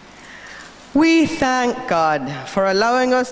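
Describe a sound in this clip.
A woman sings loudly into a microphone, her voice carried over loudspeakers.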